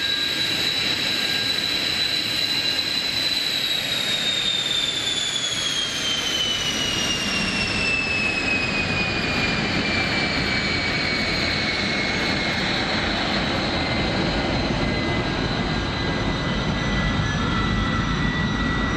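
A jet engine whines loudly close by, its high whine slowly dropping in pitch.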